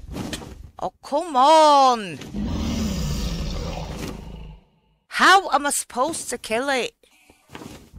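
A dragon lets out a loud, wavering roar.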